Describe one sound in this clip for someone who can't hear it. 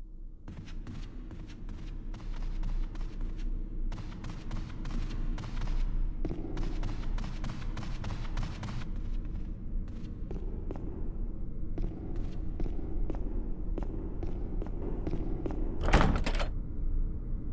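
Footsteps tap steadily on a hard floor in a large echoing room.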